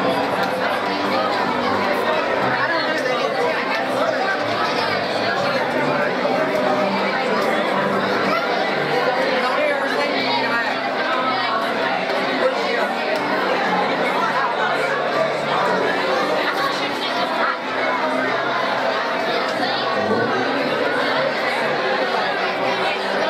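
A crowd of men and women sings along.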